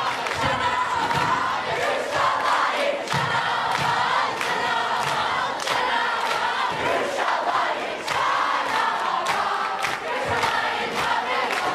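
Hands clap sharply in a crowd.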